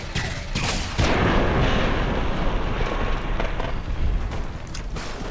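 A loud explosion bursts and rumbles away.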